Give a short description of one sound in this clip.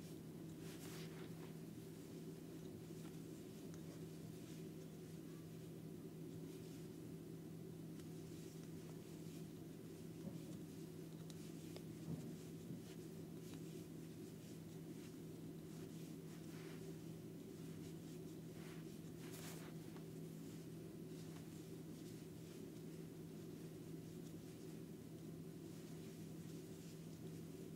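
Yarn rustles softly as it is pulled through a crochet hook.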